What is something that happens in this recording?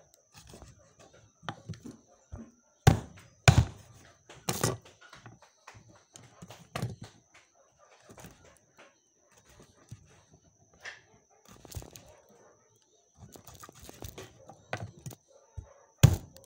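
A knife chops on a cutting board with sharp knocks.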